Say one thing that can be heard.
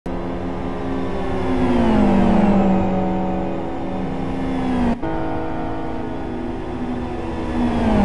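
Racing car engines roar at high revs, their pitch sliding down and rising again.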